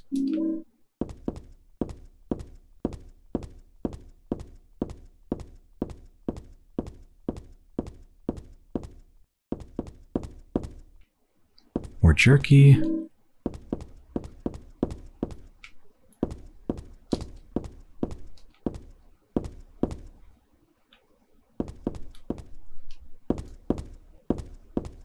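Footsteps walk on a wooden floor.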